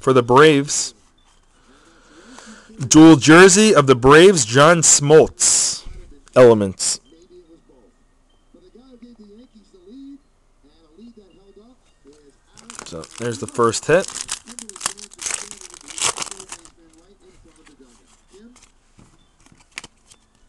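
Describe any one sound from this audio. Trading cards rustle and slide against each other as hands shuffle them.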